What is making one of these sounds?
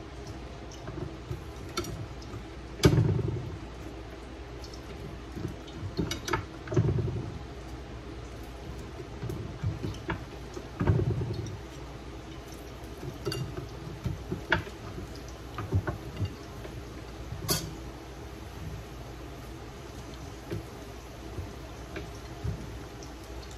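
Plantain slices sizzle as they fry in hot oil.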